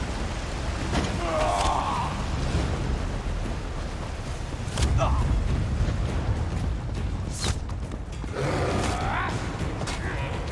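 A creature cries out in combat.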